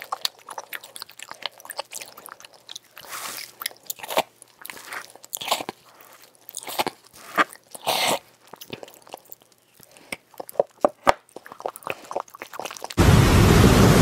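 A person bites into soap with sharp, crisp crunches close up.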